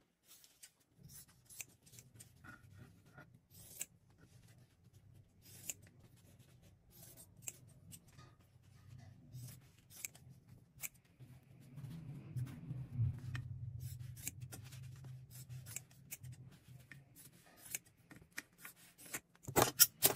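Scissors snip through paper with short crisp cuts.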